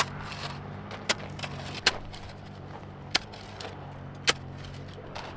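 A shovel scrapes and chops into dry soil.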